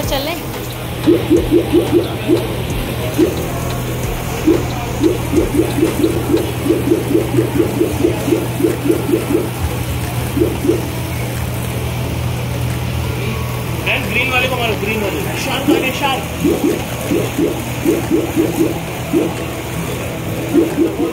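An arcade game machine plays rapid repeated sound effects.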